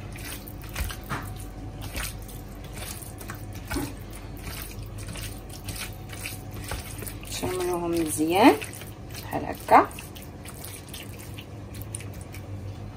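Hands squish and toss soft food pieces in a bowl with faint wet, tapping sounds.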